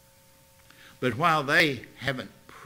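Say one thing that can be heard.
An elderly man speaks with emphasis into a microphone.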